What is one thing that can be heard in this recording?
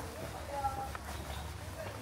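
Footsteps tread on concrete steps nearby.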